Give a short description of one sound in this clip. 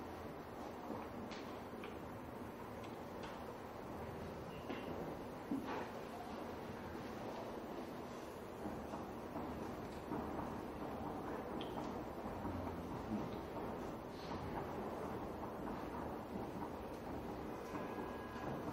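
A man speaks calmly into a microphone, heard through loudspeakers in a room.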